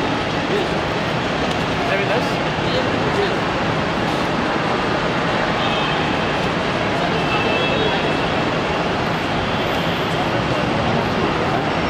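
Many voices murmur and chatter in a large, echoing hall.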